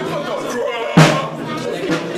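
A broom handle knocks sharply on a hard floor.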